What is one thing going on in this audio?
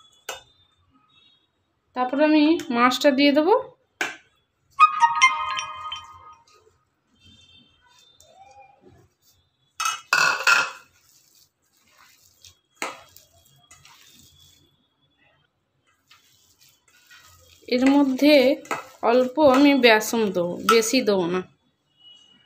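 Hands toss and mix crumbly food in a metal bowl with soft rustling.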